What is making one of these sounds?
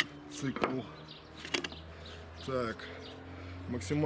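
Metal tools clink together in a box.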